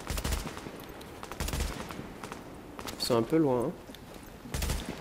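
A rifle fires short bursts of gunshots.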